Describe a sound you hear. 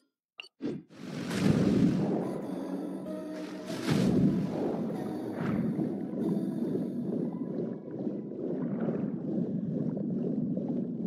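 Water swirls and bubbles as a figure swims underwater.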